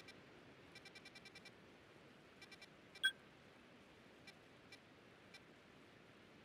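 Soft menu blips tick as a cursor moves.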